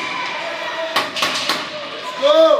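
Hockey sticks clack against the ice and the puck.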